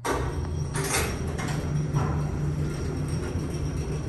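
Lift doors slide open with a rattle.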